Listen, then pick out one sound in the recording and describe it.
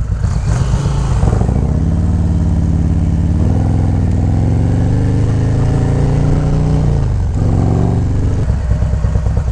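A motorcycle engine rumbles and revs.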